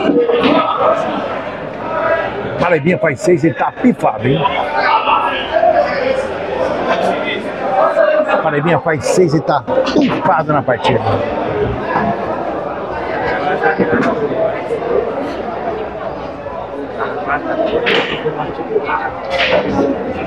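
A crowd of men chatters and talks loudly all around.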